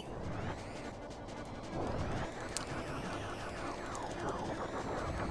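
Electronic space game sounds zap and sweep up and down in pitch.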